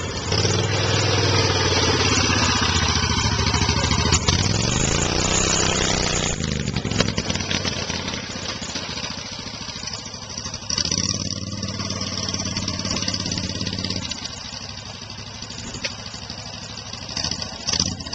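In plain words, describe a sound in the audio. A small cart's engine hums close by, rising and falling in pitch as it drives off.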